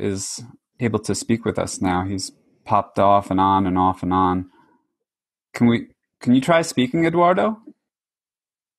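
A man talks over an online call.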